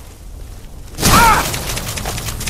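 A magic spell bursts with a loud whoosh.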